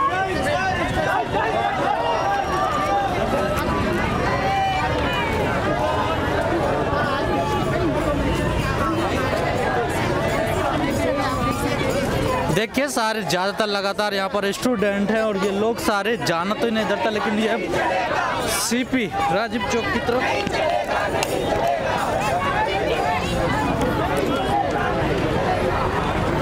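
A large crowd of men and women chants and shouts outdoors.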